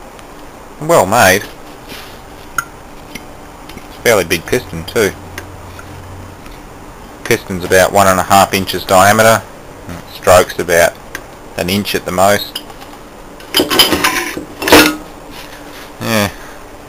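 Metal parts of a motor click and rattle as a hand moves them.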